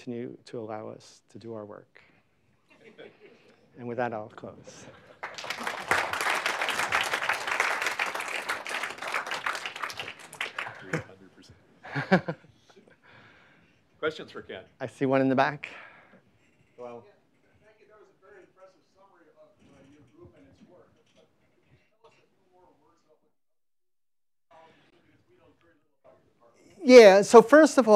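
A man speaks to an audience through a microphone in a large room, with pauses between phrases.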